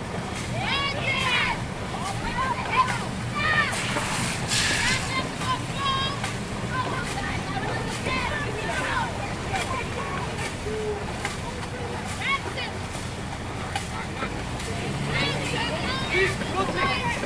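A crowd of men and women shouts and cheers loudly outdoors.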